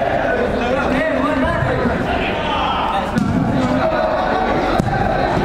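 Young men call out and shout to each other in an echoing indoor hall.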